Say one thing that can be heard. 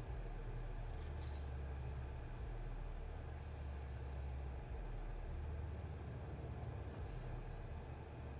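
A short swishing click sounds as a menu choice changes.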